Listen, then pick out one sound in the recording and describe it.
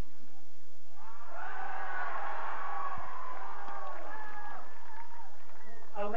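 A crowd of men and women cheers and shouts close by.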